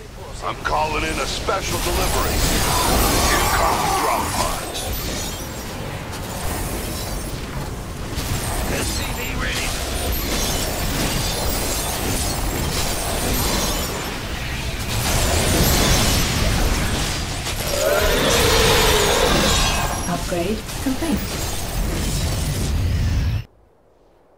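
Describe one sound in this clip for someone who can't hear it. Laser beams and explosions crackle and boom in a game battle.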